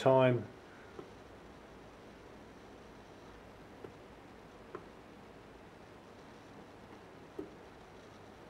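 Buttons click softly as they are pressed.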